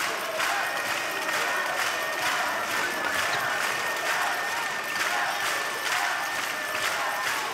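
A large indoor crowd cheers and chants in an echoing arena.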